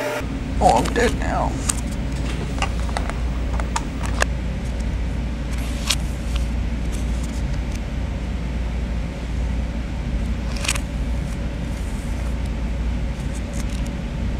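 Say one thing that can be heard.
Paper sticky notes rustle as fingers peel them off.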